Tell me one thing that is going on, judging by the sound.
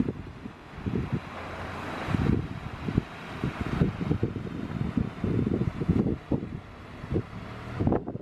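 A shallow stream trickles over rocks.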